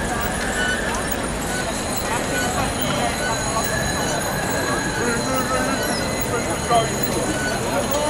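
A large crowd of cyclists rides along a street outdoors.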